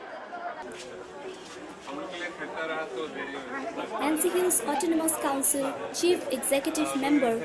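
Several people chatter in the background.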